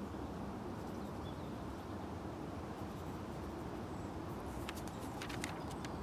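Felt-tip markers squeak and scratch on paper.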